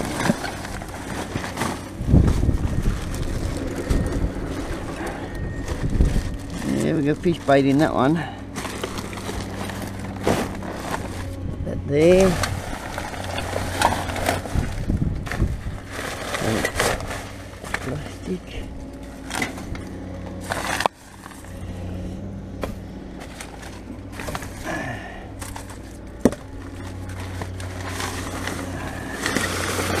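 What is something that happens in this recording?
Plastic bags and sheets rustle and crinkle as gloved hands rummage through rubbish.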